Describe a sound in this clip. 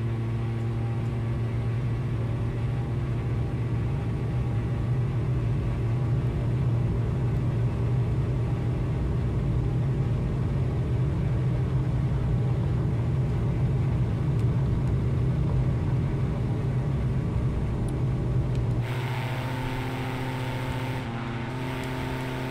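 A propeller plane's engines drone steadily and loudly.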